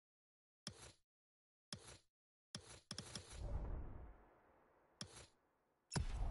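Menu clicks sound as selections are made.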